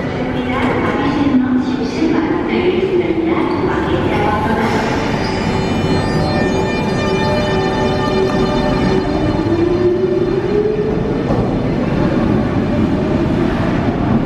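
A metro train pulls away with a rising electric whine.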